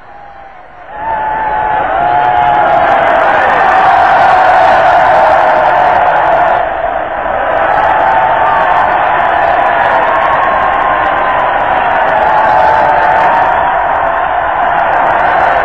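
A large crowd cheers and murmurs outdoors.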